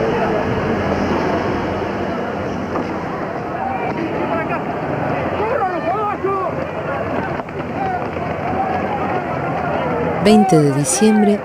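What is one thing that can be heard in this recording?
A crowd shouts and clamours outdoors.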